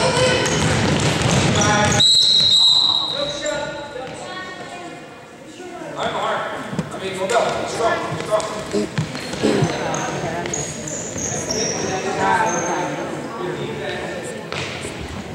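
Young voices shout and call out in a large echoing gym.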